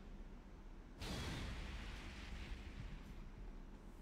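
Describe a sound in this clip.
A game's sound effect whooshes in loudly and slowly fades.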